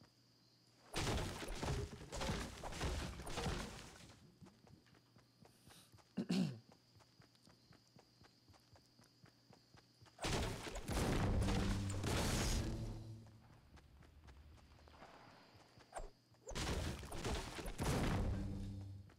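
A pickaxe chops repeatedly into a tree trunk.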